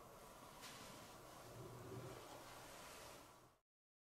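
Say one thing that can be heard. A small lid is set down on a wooden tray with a soft clack.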